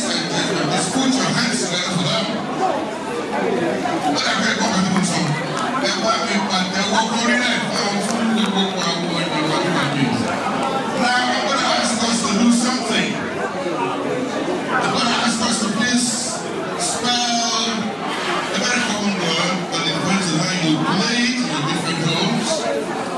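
A crowd of men and women chatters and cheers in the background.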